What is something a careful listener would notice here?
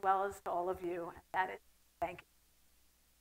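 A woman speaks through a microphone to an audience.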